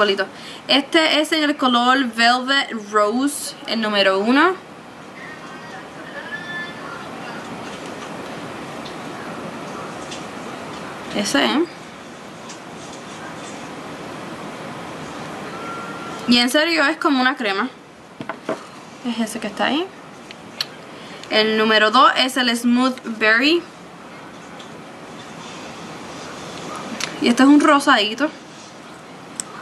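A young woman talks calmly and close to a microphone, in bursts with pauses.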